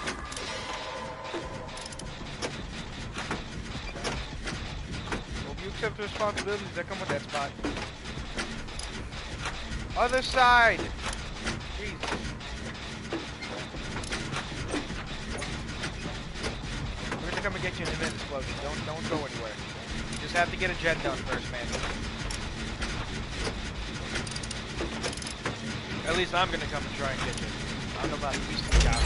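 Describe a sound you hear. A generator engine rumbles and clanks steadily.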